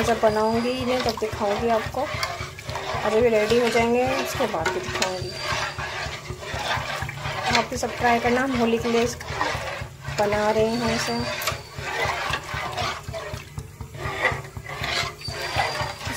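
A metal spoon scrapes and clinks against a metal pot while stirring thick batter.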